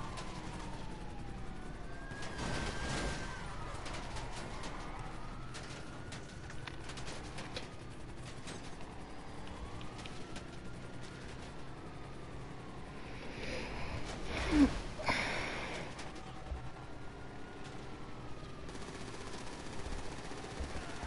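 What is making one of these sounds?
A siren wails in rising and falling sweeps.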